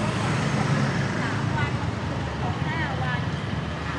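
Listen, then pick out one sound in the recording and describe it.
A motorbike engine hums close by.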